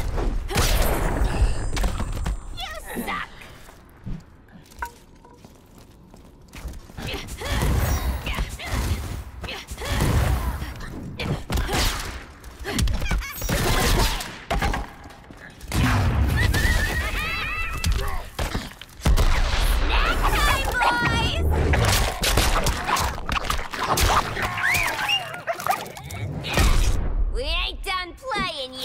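Punches and kicks land with heavy thuds and smacks.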